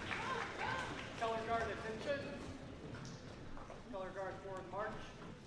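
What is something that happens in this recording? A crowd of young people and adults chatters in a large echoing hall.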